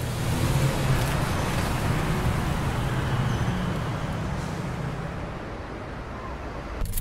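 A car engine rumbles as a vehicle drives off.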